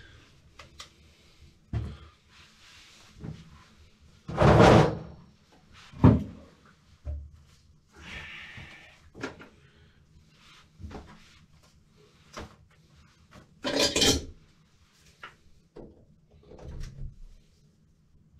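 Feet in plastic shoe covers shuffle and rustle on a tiled floor.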